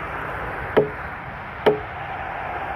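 An axe strikes a log with sharp knocks.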